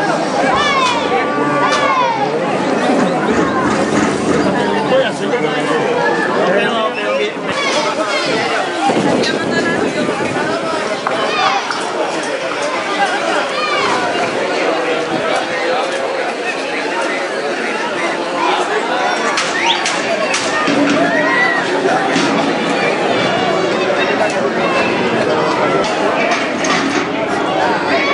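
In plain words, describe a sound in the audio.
A crowd of spectators chatters and shouts loudly outdoors.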